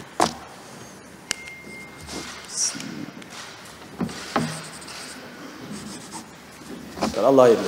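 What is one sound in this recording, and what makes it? Pens scratch on paper.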